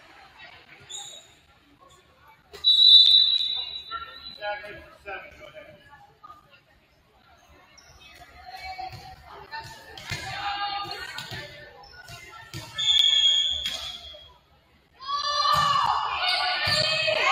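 A volleyball thumps against hands and arms.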